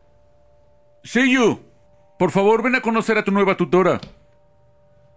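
A boy speaks loudly and clearly, close by.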